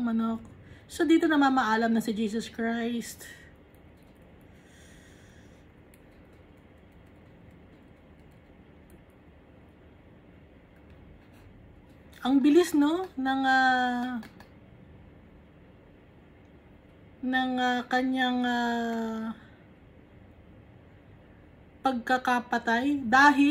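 A woman sings softly close by in short phrases with long pauses between them.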